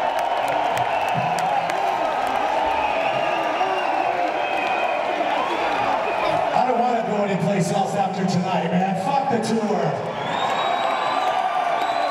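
A large crowd cheers and roars in a big echoing hall.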